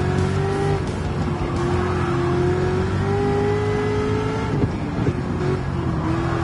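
A racing car engine roars steadily at high revs, its pitch shifting as gears change.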